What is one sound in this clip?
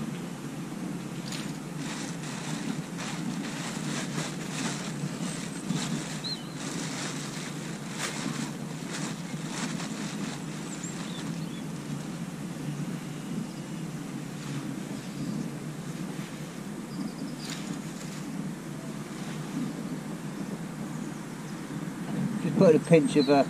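Small clicks and rattles come from fishing tackle being handled close by.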